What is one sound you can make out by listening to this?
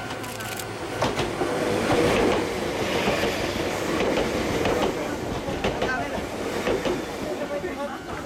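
Wheels clatter over rail joints in quick knocks.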